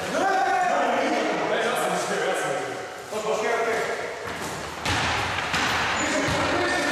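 Men's voices call out and talk in an echoing hall.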